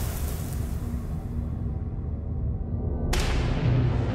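A racing car engine roars past.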